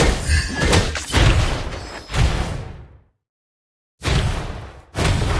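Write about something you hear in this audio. Video game spells whoosh and crackle in bursts.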